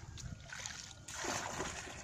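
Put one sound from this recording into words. Water splashes as it is poured from a bucket.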